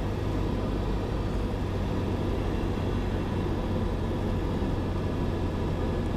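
A small aircraft engine drones loudly and steadily from inside the cockpit.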